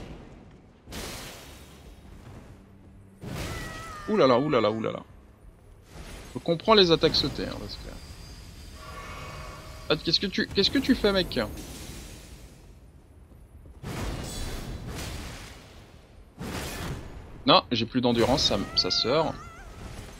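Magic blasts burst with a crackling roar.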